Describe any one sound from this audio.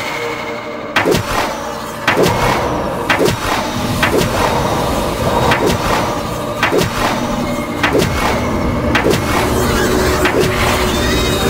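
A laser gun fires in sharp, repeated blasts.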